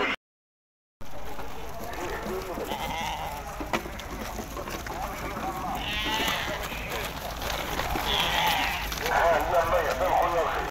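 Sheep bleat loudly nearby.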